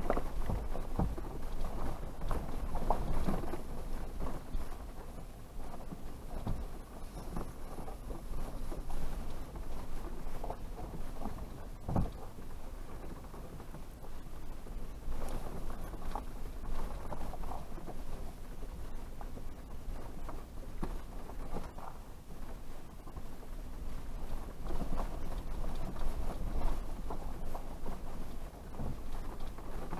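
A vehicle engine rumbles low and steady while driving slowly.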